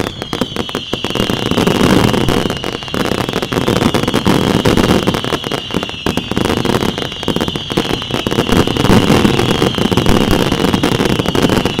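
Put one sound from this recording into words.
Fireworks boom in a louder, heavier barrage.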